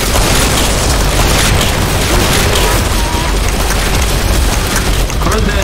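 Rapid gunfire rattles continuously.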